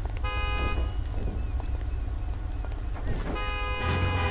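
A body thumps down onto a car's hood.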